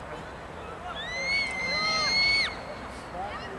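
A referee blows a long, shrill whistle.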